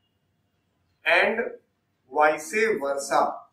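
A man lectures calmly through a clip-on microphone.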